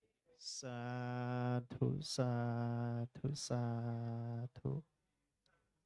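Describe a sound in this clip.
A man chants in a deep, steady voice, holding long tones with short breaths between them.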